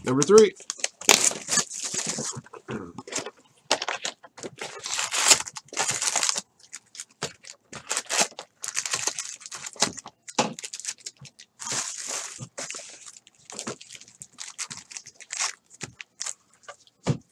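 Foil card packs crinkle and rustle as hands shuffle them.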